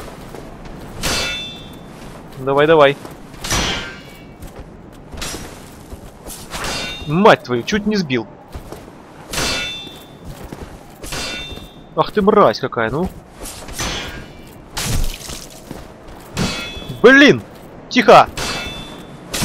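Weapons swish through the air in quick swings.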